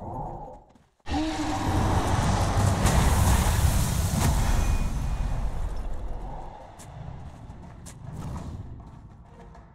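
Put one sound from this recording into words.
Magic blasts and ice crash loudly in a game battle.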